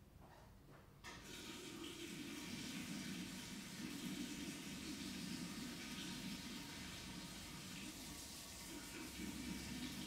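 Water runs steadily from a tap.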